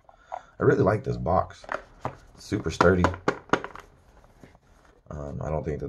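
A cardboard box rustles and scrapes in hands.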